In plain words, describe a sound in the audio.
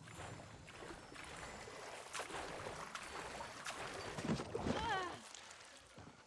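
Water sloshes and splashes as a swimmer moves through it.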